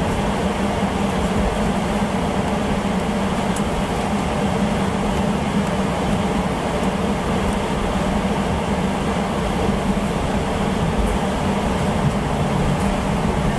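Jet engines roar steadily as an airliner taxis.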